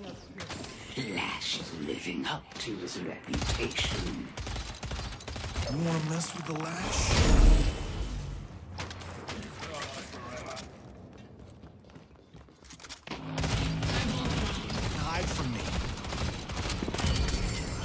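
Weapons fire in rapid bursts of blasts and zaps.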